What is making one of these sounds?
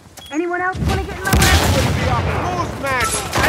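An explosion booms loudly.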